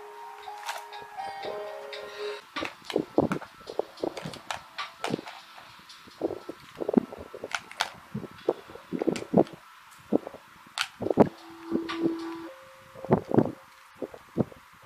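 Plastic tubes click and clatter against a plastic box.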